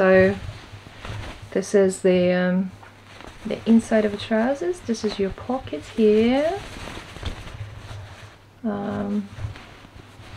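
A woman talks calmly close to a microphone.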